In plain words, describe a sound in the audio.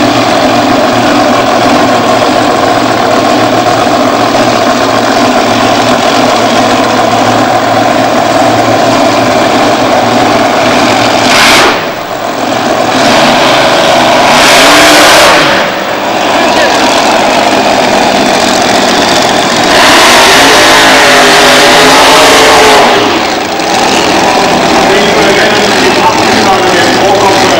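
A supercharged nitro V8 top fuel dragster engine roars and revs.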